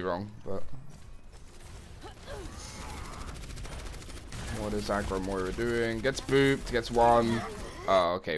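Game weapons fire and abilities blast in quick bursts.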